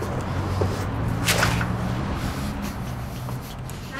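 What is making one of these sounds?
A heavy door clunks open and swings shut.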